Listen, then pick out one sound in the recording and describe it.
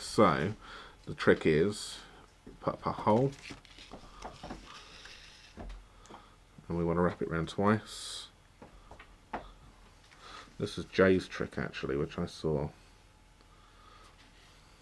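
Card stock rustles and slides under hands.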